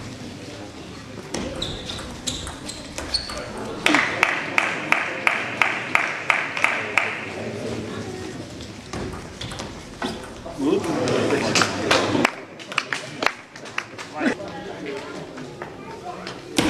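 A table tennis ball clicks back and forth on paddles and the table.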